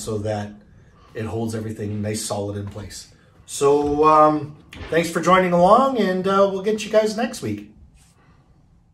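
A middle-aged man talks to the microphone in a calm, friendly way.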